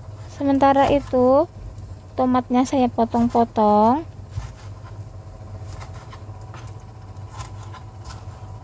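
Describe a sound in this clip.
A knife slices through a soft tomato.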